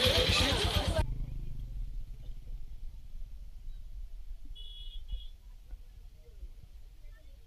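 Motorcycles ride by with engines humming.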